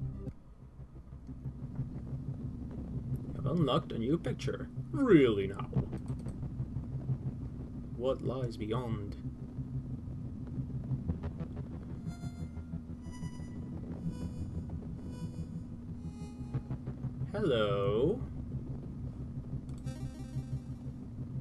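A low steady musical drone plays.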